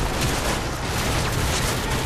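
Gunfire cracks in bursts nearby.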